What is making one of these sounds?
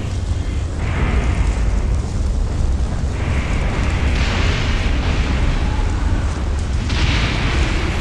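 Strong wind roars and swirls, growing louder.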